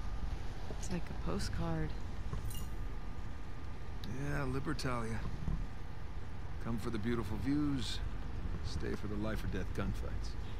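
A man answers calmly, with dry humour.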